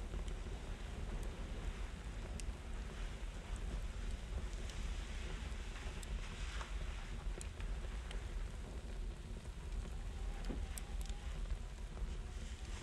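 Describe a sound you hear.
Cloth rustles softly as a person moves about.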